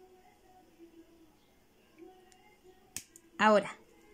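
Scissors snip a thread with a small click.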